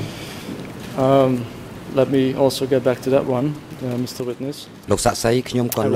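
A man speaks steadily into a microphone, as if reading out.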